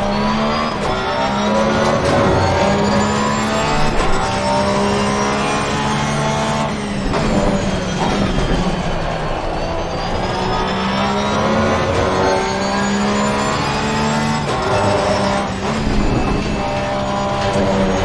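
A racing car engine roars loudly, revving up through the gears and dropping as it brakes.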